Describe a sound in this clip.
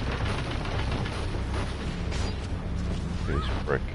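Rapid gunfire crackles from a rifle.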